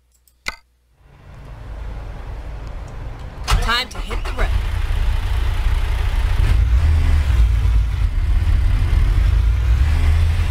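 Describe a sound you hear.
A truck engine starts and rumbles steadily at idle.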